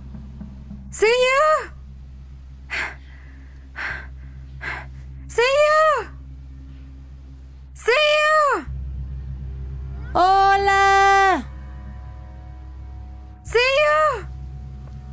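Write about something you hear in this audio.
A young woman shouts loudly outdoors, calling out again and again in long, drawn-out cries.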